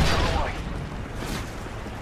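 Flames crackle in a burning crate.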